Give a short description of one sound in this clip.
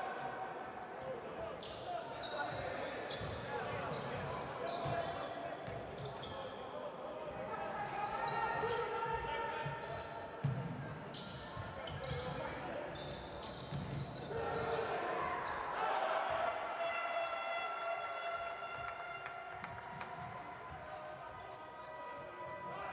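A basketball bounces on a wooden floor as it is dribbled.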